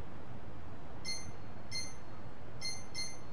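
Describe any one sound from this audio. A short electronic menu beep sounds several times.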